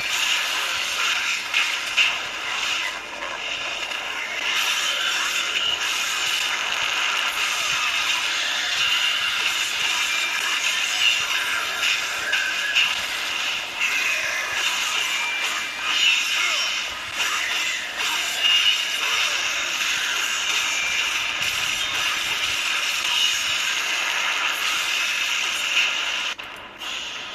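Fighting sounds and music from a video game play through a small phone speaker.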